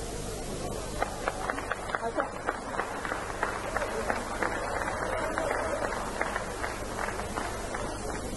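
A plucked lute strums a rhythm.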